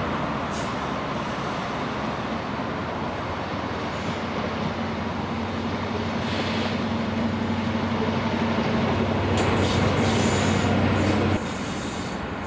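A diesel engine drones steadily, then cuts off.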